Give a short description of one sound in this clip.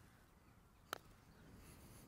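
A putter taps a golf ball with a soft click.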